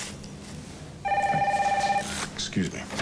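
A telephone rings.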